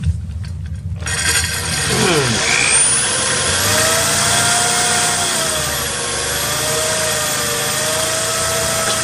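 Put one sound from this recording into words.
A power drill whines as its bit grinds into glass.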